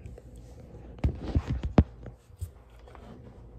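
A hand taps and rubs against the microphone.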